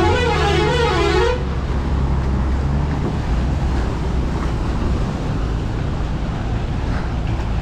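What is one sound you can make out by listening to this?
A bus engine rumbles low and steadily nearby.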